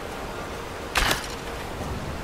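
An arrow thuds into a target.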